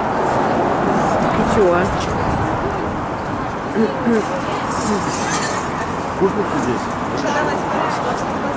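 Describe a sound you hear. A hammer strikes metal on an anvil.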